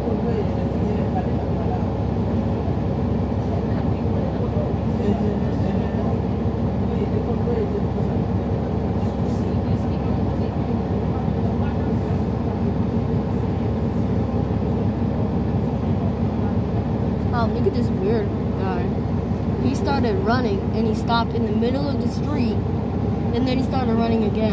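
A bus engine rumbles steadily from inside the moving bus.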